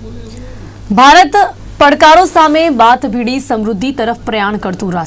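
A young woman reads out the news calmly through a microphone.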